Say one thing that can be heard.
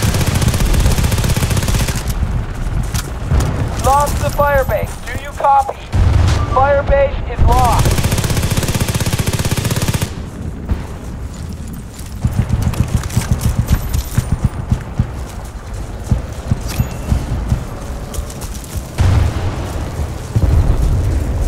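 Rapid gunfire bursts ring out nearby.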